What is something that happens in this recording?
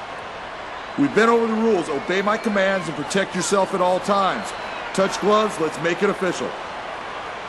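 A man speaks firmly to two fighters.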